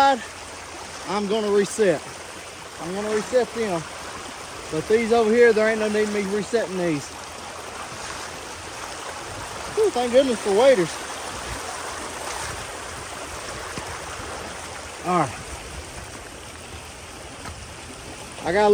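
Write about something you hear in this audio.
A man talks close up with animation.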